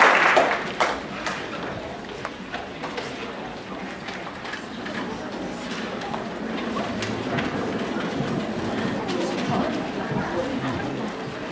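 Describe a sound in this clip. Young people chatter quietly.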